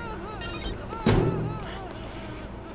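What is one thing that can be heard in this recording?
A door swings open with a sharp thud.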